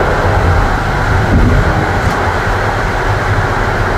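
Wheels clatter over rail joints and switches.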